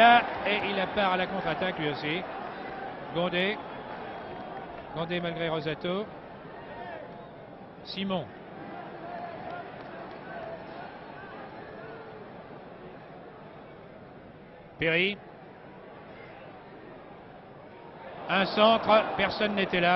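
A large crowd murmurs and calls out across an open stadium.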